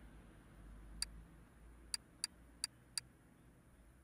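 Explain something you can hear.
Short electronic menu clicks tick several times.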